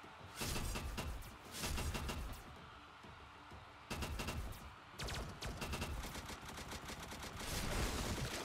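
Rapid game gunfire rattles in short bursts.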